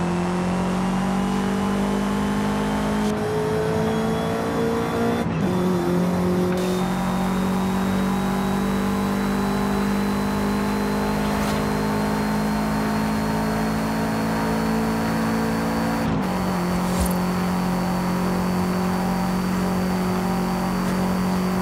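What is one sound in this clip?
A car engine roars loudly as it accelerates, rising in pitch and dropping briefly at each gear change.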